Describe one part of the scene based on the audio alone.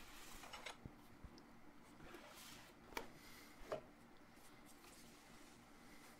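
A panel scrapes and slides across a wooden board.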